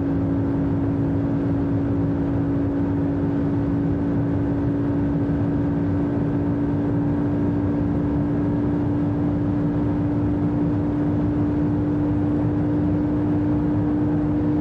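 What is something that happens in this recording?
Wind and tyres roar on the road.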